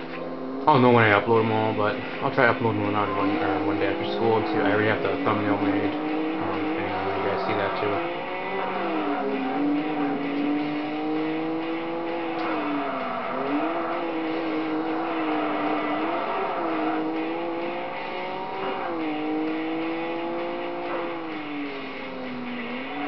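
A racing car engine roars and revs, rising and dropping in pitch as the gears shift.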